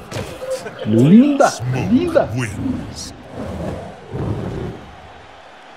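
A puff of smoke bursts with a whoosh.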